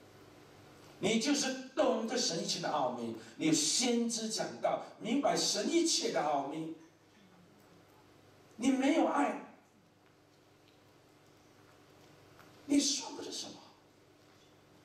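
A man speaks with animation through a microphone in a large hall, pausing between phrases.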